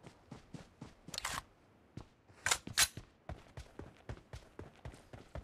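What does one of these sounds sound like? Footsteps thud quickly and steadily over grass.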